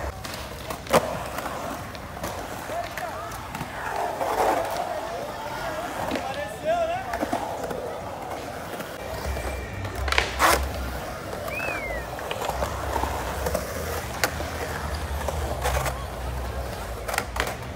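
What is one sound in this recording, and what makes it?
Skateboard wheels roll and rumble across concrete.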